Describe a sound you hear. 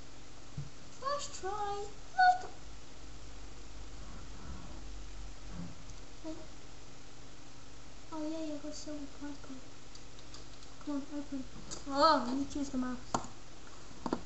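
A boy speaks with animation close to a microphone.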